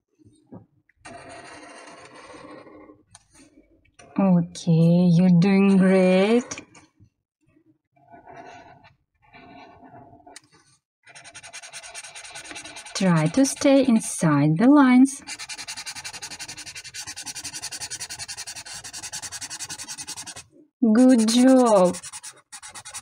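A felt-tip marker rubs and squeaks across paper, colouring in.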